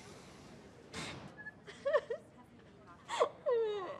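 A young woman sobs.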